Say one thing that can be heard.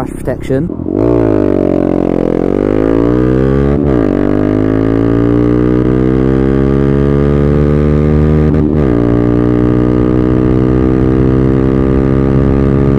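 A motorcycle engine revs hard and climbs in pitch as it accelerates through the gears.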